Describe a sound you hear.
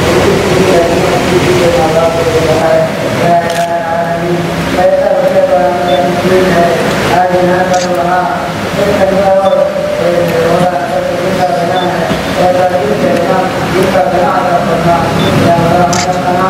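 A man recites a prayer.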